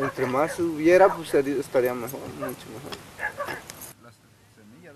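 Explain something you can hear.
A middle-aged man speaks calmly close by, outdoors.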